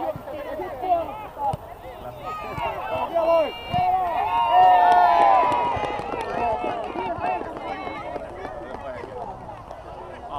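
Children shout and call out in the distance across an open field.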